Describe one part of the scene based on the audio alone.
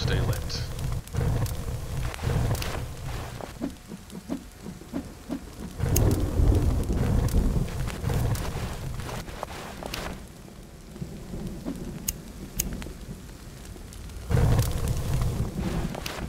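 A burning torch crackles and roars.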